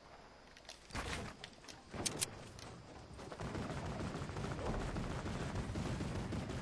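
Wooden walls are placed with quick knocking clicks in a game.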